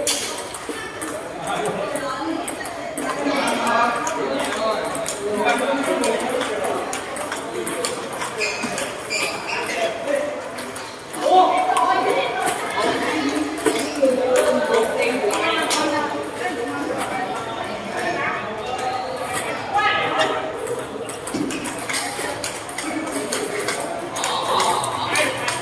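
A crowd of young men and women chatter in the background.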